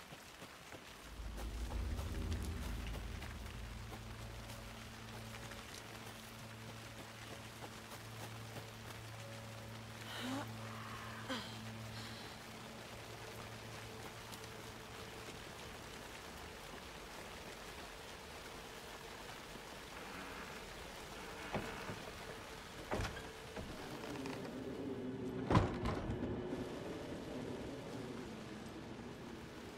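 Footsteps crunch through undergrowth at a walking pace.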